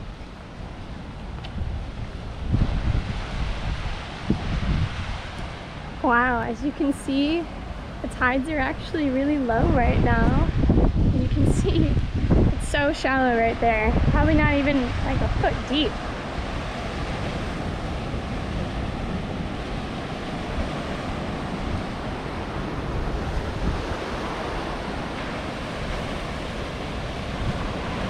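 Small waves wash gently over rocks.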